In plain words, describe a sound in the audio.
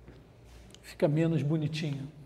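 A man speaks up to a room, close by.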